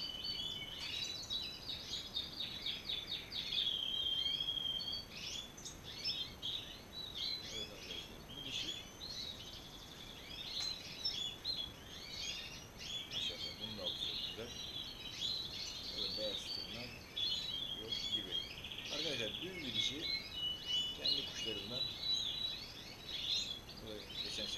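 Many small caged birds chirp and twitter constantly.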